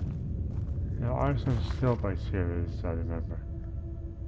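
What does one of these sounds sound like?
A book opens with a rustle of paper pages.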